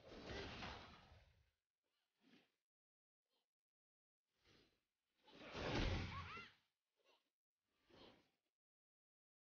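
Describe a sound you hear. Video game spell effects whoosh and burst in short bursts.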